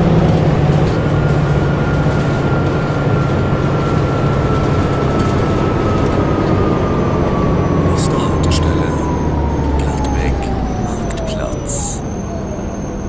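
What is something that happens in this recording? An automatic transmission whine falls in pitch as a diesel city bus slows to a stop.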